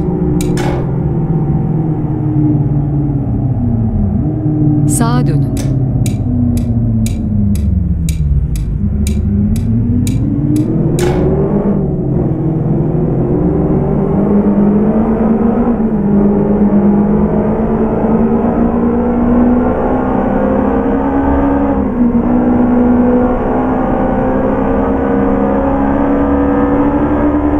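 A car engine hums steadily, dropping in pitch and then revving up again.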